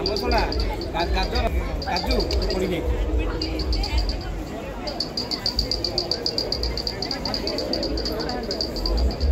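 Several men talk nearby amid a busy crowd murmur.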